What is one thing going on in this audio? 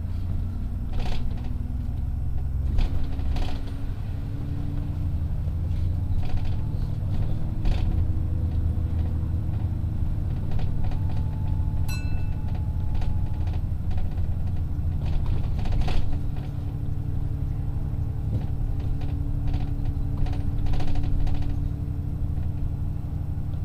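A large vehicle's engine rumbles steadily while driving.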